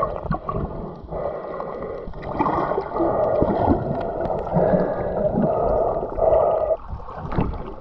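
Swim fins kick and splash near the surface.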